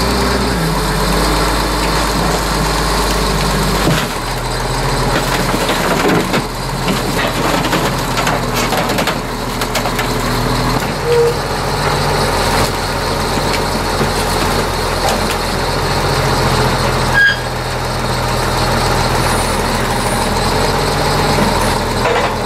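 Car metal crunches and creaks under heavy weight.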